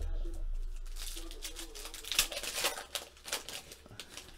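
A foil card pack crinkles as hands tear it open.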